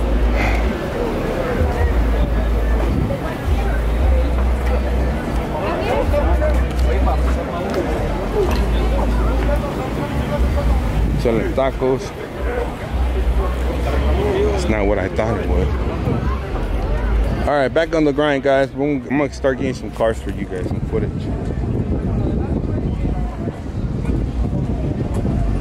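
A crowd of people chatter around outdoors.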